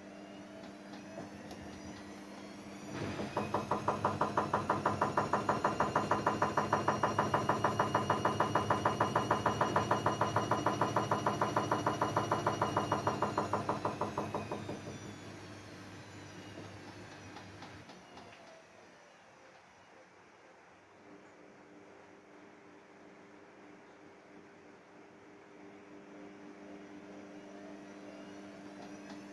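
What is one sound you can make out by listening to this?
A washing machine hums as its drum turns.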